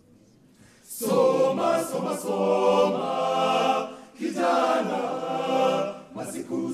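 A choir of young voices sings together in an echoing hall.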